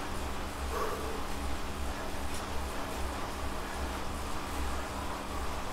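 An indoor bike trainer whirs steadily, pulsing with each pedal stroke.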